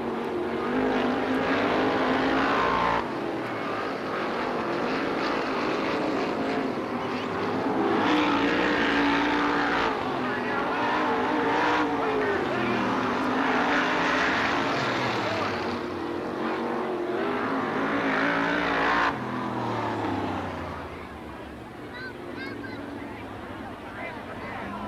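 A race car engine roars loudly, rising and falling in pitch.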